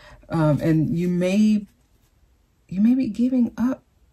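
A card is flipped over softly.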